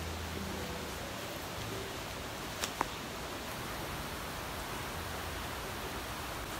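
Hands rub and squeeze wet hair.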